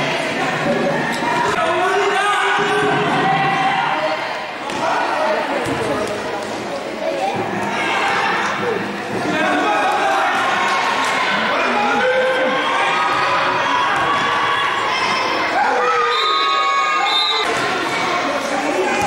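Young girls shout and call out to each other in a large echoing hall.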